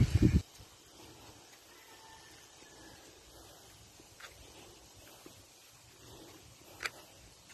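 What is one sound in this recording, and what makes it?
Small wheels roll faintly over a gravel path.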